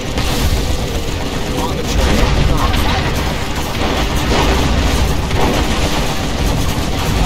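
Loud explosions boom one after another.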